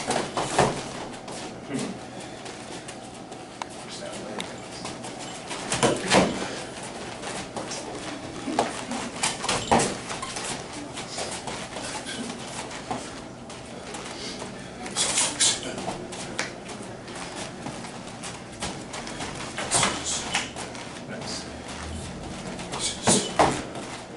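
Hands slap and thud against arms as two people spar at close range.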